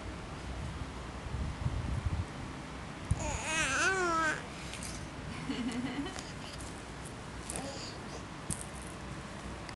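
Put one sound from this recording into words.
A crinkly toy rustles under a baby's hands.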